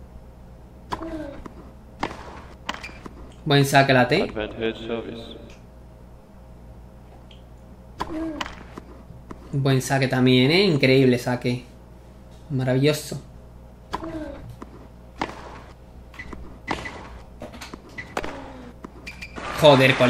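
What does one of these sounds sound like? A tennis ball is struck back and forth with sharp pops.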